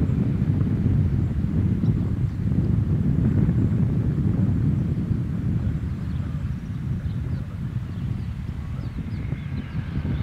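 A jet airliner's engines roar loudly as it speeds down a runway.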